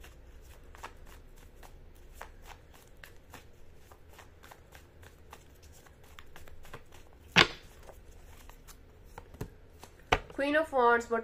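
Cards riffle and click softly as a deck is shuffled by hand.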